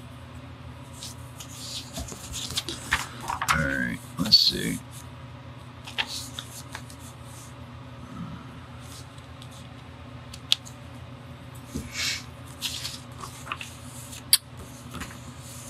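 A sheet of paper rustles and slides as it is moved.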